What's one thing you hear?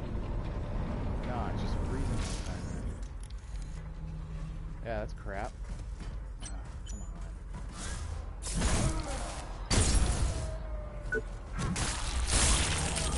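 Heavy metal footsteps clank on a metal floor.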